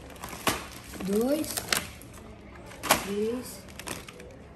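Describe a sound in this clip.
A young boy speaks in a high voice.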